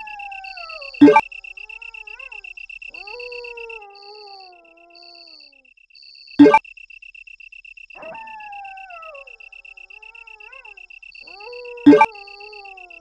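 A sharp electronic chime sounds as a menu item is chosen.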